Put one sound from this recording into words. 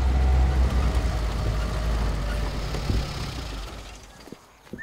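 A vehicle engine rumbles low and steady, then fades.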